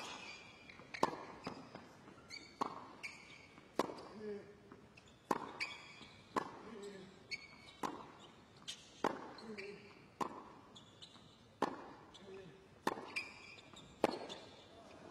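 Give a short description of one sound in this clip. A tennis ball is struck back and forth in a rally, with sharp pops of the racket.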